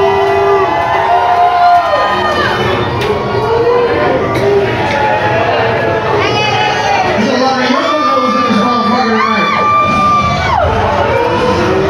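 Loud music with synthesizer melodies plays through loudspeakers in a large hall.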